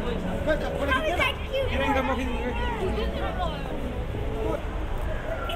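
Nearby pedestrians talk in passing.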